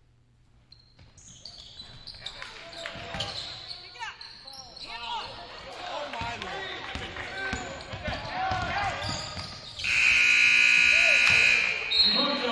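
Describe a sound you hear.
A crowd cheers and shouts in a large echoing gym, growing louder.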